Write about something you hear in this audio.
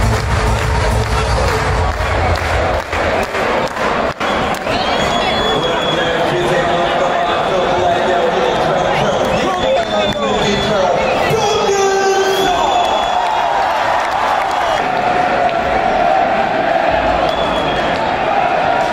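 A large crowd chants and sings loudly in an echoing arena.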